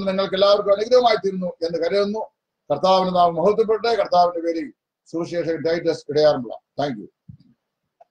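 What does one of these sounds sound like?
A middle-aged man speaks calmly and close to the microphone.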